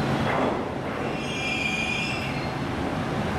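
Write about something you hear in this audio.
Train brakes squeal briefly.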